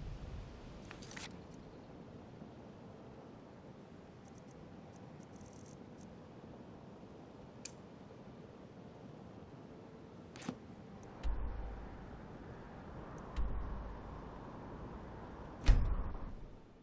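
Soft interface clicks tick now and then as menu pages change.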